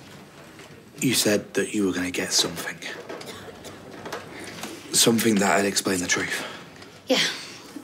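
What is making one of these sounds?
A young man speaks with emotion, close by.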